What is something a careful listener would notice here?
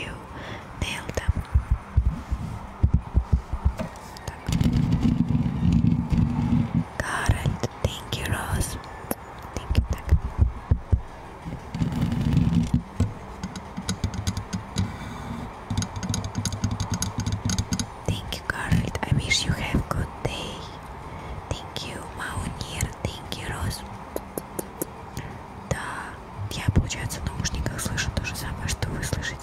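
Fingernails tap and scratch on a microphone up close.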